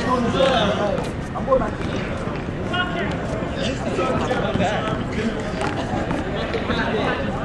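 Sneakers scuff and tap on pavement.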